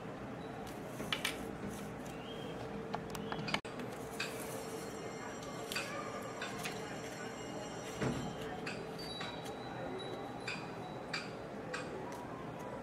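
Stiff paper crinkles and rustles softly as it is handled and folded.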